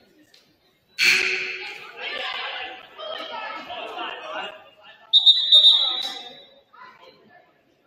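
A crowd cheers in a large echoing gym.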